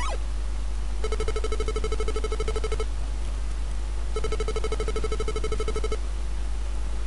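Rapid electronic beeps tick quickly as a video game tallies a score.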